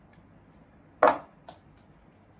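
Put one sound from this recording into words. A ceramic bowl knocks down onto a table.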